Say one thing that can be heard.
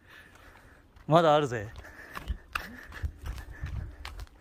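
Shoes step on bare rock.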